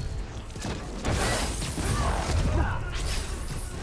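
A loud burst of energy crackles and booms.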